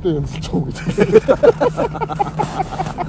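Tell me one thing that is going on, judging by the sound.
A man laughs close by.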